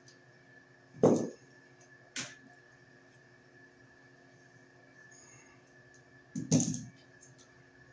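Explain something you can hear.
Tools click and knock against wires.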